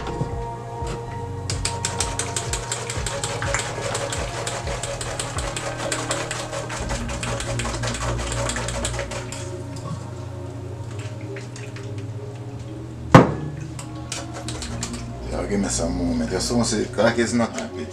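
A spoon scrapes against a metal mesh strainer.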